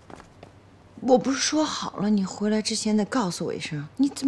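A woman speaks softly and reproachfully up close.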